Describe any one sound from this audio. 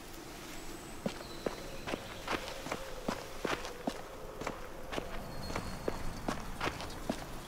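Footsteps crunch slowly on gravel and dirt.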